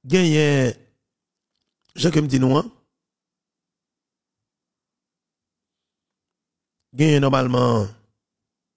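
A man speaks calmly and close into a microphone, in short phrases with pauses.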